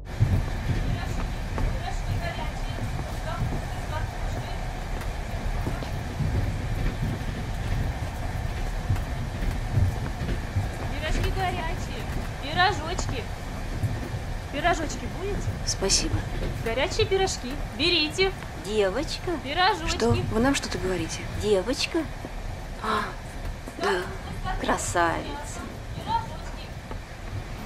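A train carriage rumbles and rattles steadily.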